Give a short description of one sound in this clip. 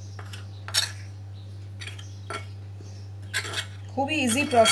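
A spoon stirs through flour in a ceramic bowl.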